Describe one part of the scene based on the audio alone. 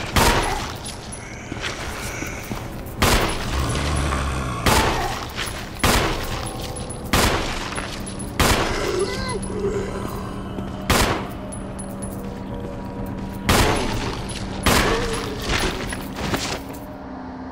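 Gunshots ring out one at a time, loud and echoing.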